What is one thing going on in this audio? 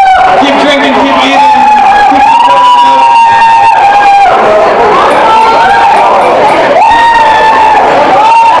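A band plays amplified rock music loudly.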